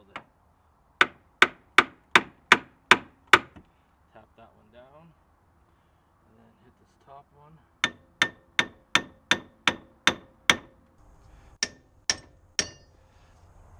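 A hammer strikes metal in quick, ringing blows.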